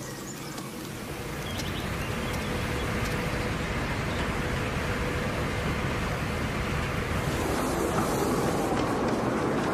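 Water churns and splashes against a hull.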